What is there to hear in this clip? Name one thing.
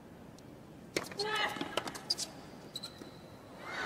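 A tennis ball is struck sharply by a racket several times.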